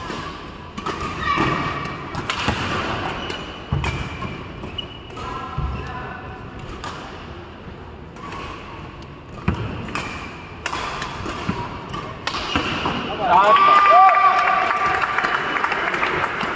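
Shoes squeak on the court floor.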